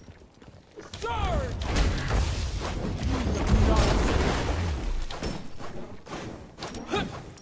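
Game explosions and magic blasts crash and rumble.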